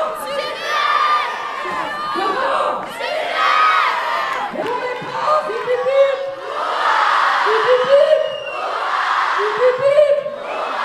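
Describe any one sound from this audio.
A large crowd of children shouts and cheers in a large echoing hall.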